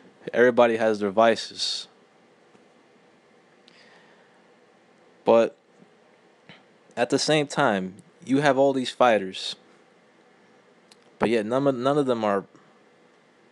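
A man speaks up close in short bursts.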